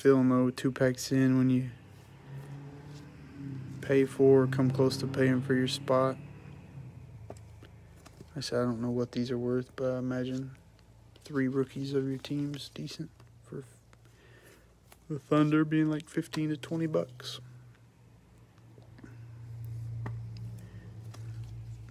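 A card slides in and out of a plastic sleeve with a soft crinkle.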